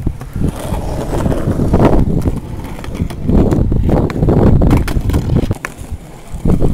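A skateboard clacks against concrete as it lands.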